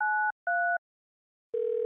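Touch-tone phone keys beep.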